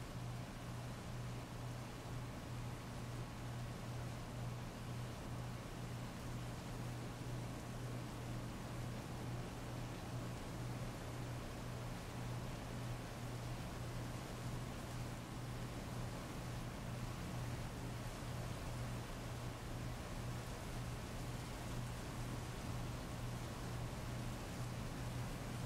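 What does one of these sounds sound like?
Heavy rain pours steadily and splashes on wet pavement.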